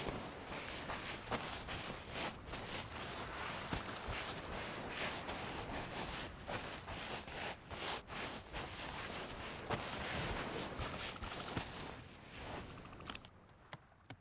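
Footsteps crunch softly on sand.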